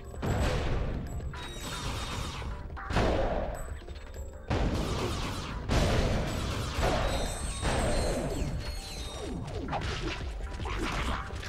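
Cannon blasts and explosions boom repeatedly.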